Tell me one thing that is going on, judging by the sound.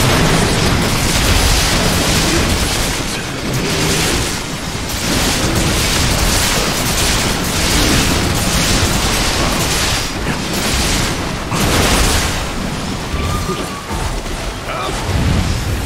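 Water splashes heavily as a large creature thrashes.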